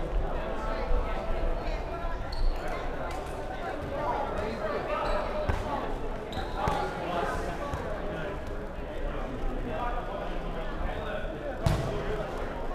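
A ball thuds on a wooden floor.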